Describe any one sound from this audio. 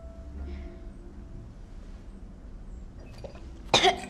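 A young woman gulps from a bottle.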